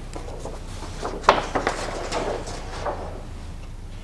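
Paper rustles as a flip chart page is turned.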